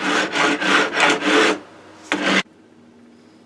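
A file rasps in quick strokes across wood.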